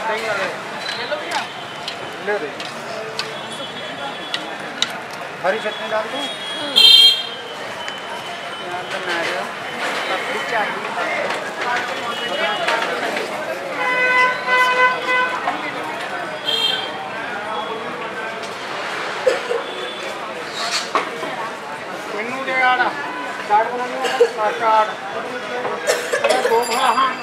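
A crowd chatters nearby outdoors.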